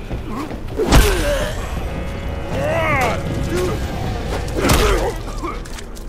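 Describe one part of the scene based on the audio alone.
Heavy blows land with loud thuds during a fight.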